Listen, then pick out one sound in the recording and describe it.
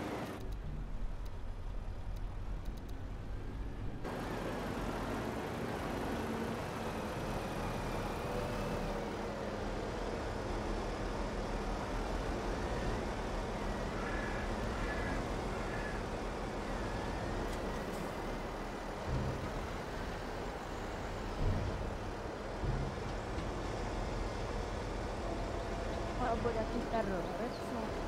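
A heavy loader's diesel engine rumbles steadily.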